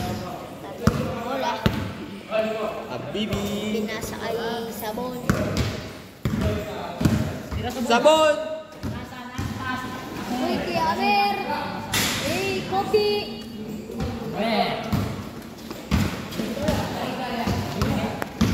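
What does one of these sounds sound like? A basketball bounces on a hard outdoor court.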